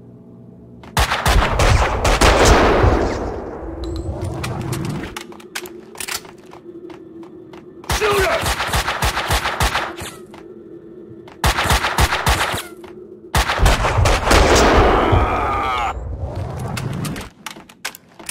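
Gunfire rings out in loud bursts that echo around hard walls.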